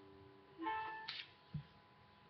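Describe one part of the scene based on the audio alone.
A ukulele is briefly strummed close by.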